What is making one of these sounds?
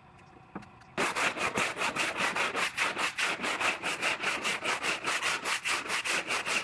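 Hands rub briskly back and forth over a film.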